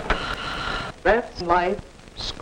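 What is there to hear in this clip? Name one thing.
A woman speaks briefly.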